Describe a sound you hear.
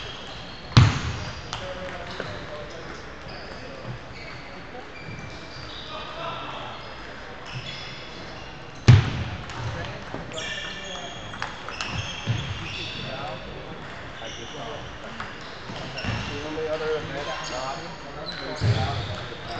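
Sounds echo around a large hall.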